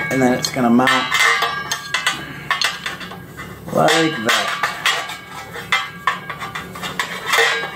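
Metal parts clink and tap against a metal housing.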